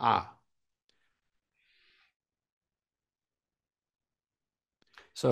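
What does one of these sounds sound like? An elderly man speaks calmly into a microphone, in short bursts.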